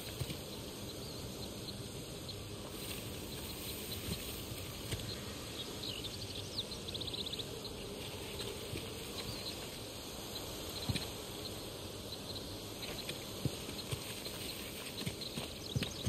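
Footsteps scuff over rock and leaves.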